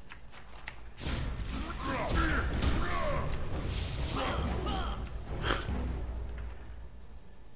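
Magic spells whoosh and crackle during a fight.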